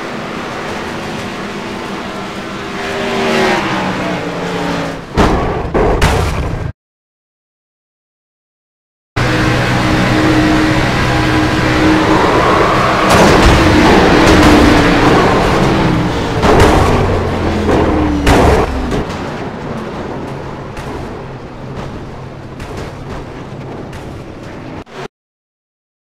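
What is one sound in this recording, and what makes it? Race car engines roar and whine.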